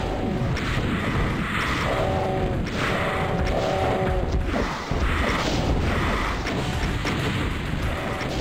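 Fireballs whoosh and explode repeatedly.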